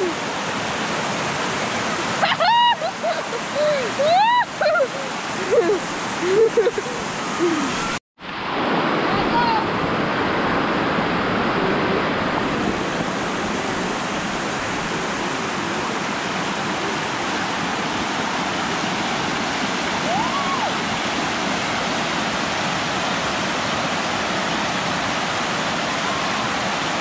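Water rushes and splashes steadily over rocks outdoors.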